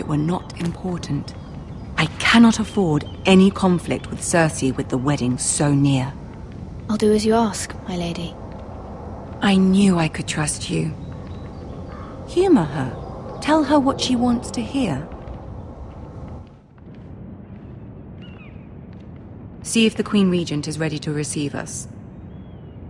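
Young women talk calmly to each other at close range.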